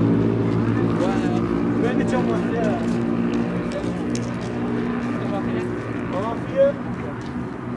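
Men shout in the distance outdoors.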